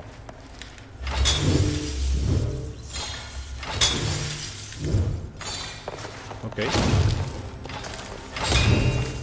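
Deep rumbling blasts boom in repeated bursts.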